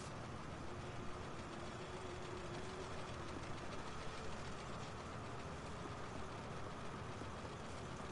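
Small footsteps patter on a creaking wooden floor.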